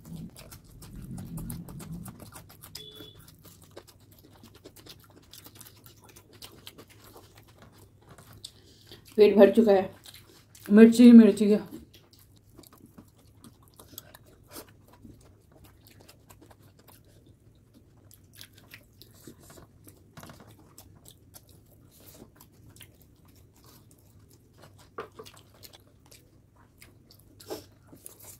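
Two women chew and munch food close to a microphone.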